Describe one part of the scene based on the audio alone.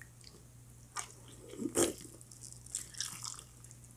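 Crispy food crunches as a woman bites into it.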